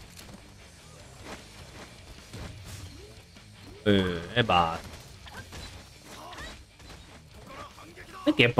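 Blades swish and strike in a chaotic fight.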